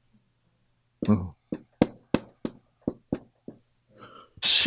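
A marker taps and squeaks on a whiteboard.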